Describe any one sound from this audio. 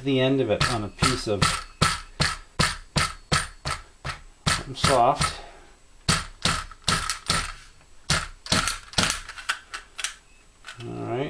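A handheld tool clicks sharply over and over.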